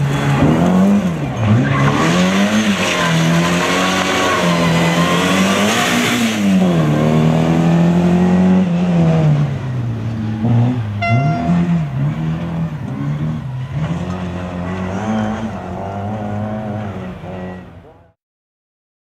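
A rally car engine revs hard, rising and falling as the car slides through corners.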